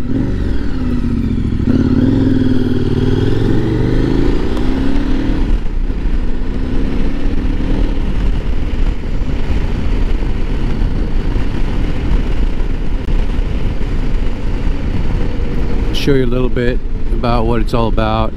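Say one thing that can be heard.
A motorcycle engine hums steadily, its pitch rising and falling as it accelerates and slows.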